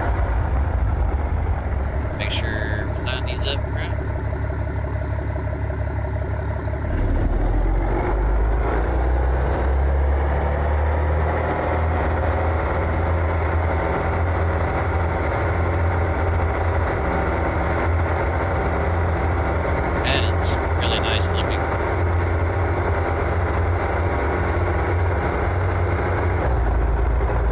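A truck engine rumbles steadily and revs up.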